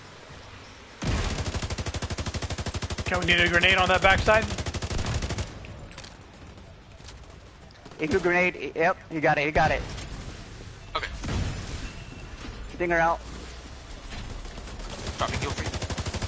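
A rifle fires in rapid bursts close by.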